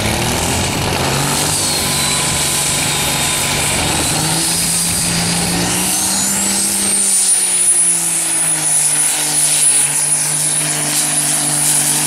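A truck's diesel engine roars loudly and revs higher as it pulls a heavy sled.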